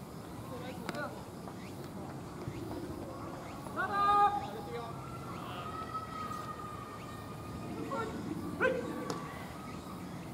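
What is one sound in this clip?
Young men shout calls from across an open field outdoors.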